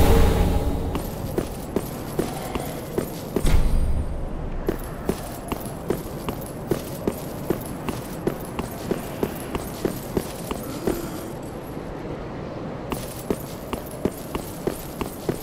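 Armoured footsteps clank rhythmically on stone.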